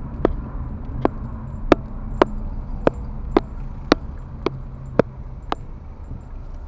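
A turn signal ticks at an even pace as the car turns.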